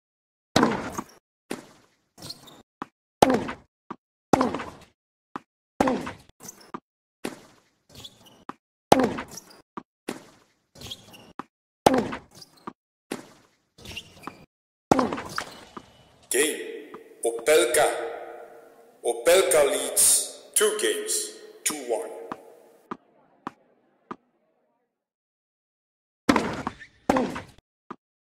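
Tennis balls are struck sharply by rackets and bounce, back and forth in a rally.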